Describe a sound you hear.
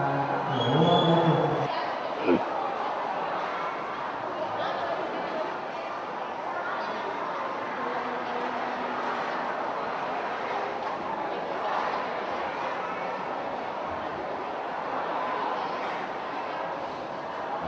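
A crowd murmurs and chatters in a large open space.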